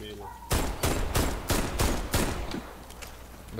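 A rifle fires a quick series of loud shots.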